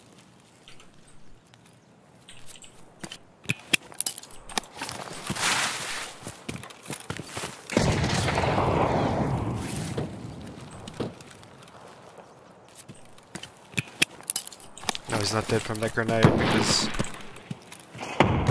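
Footsteps crunch over rough ground and brush.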